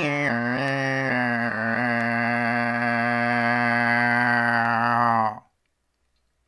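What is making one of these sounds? A man sings one long, steady note close by, then stops abruptly.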